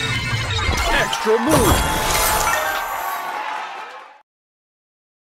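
Game jingles and chimes play as gems are matched.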